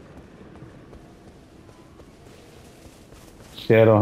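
Footsteps run softly over grass.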